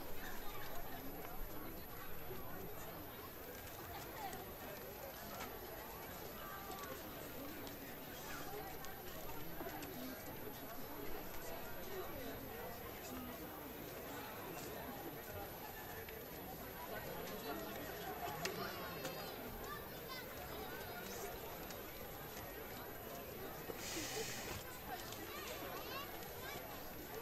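Footsteps shuffle slowly on paving.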